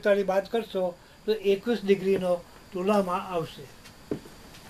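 An elderly man reads aloud nearby in a calm voice.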